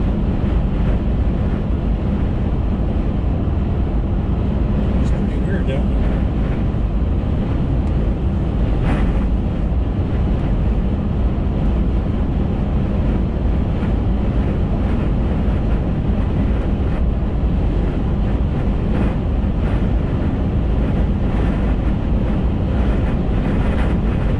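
A car drives steadily along a highway, its engine and tyres rumbling from inside the cabin.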